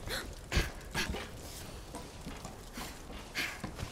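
Hands and feet knock on a wooden ladder while climbing.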